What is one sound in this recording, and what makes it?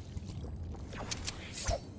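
A game character drinks a potion with a gulping sound.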